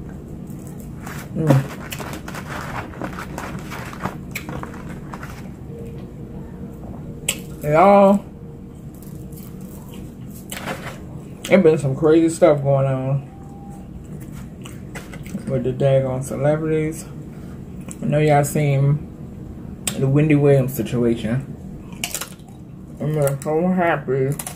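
A young woman chews food with smacking sounds.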